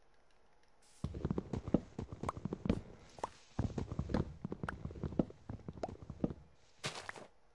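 An axe chops wood in quick, repeated knocks.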